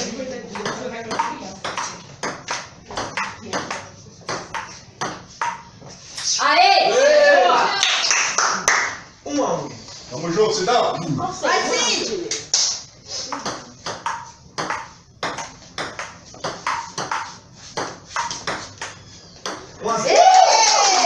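A ping pong ball clicks rapidly back and forth off paddles and a table.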